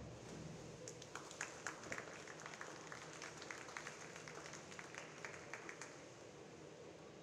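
Spectators clap.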